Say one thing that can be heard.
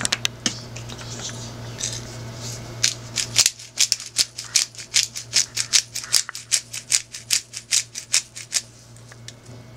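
Grains rattle as a small shaker is shaken in quick bursts.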